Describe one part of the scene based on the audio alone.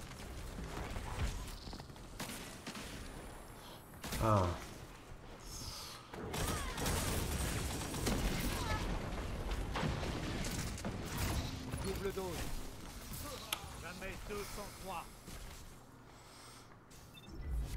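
Gunfire and explosions from a video game crackle and boom.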